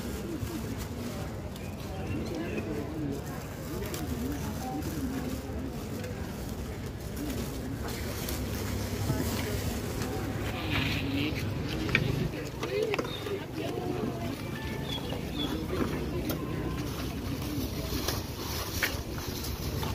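Young men talk.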